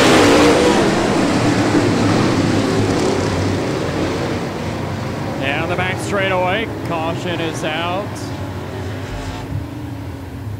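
Race car engines roar loudly outdoors and slowly fade.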